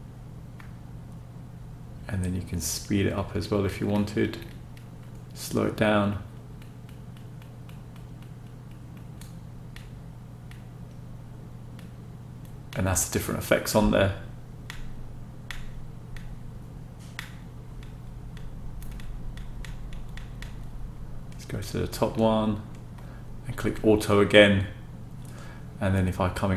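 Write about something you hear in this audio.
Computer fans hum steadily.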